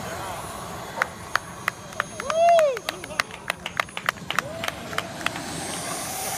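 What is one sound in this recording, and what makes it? A model jet touches down hard on asphalt.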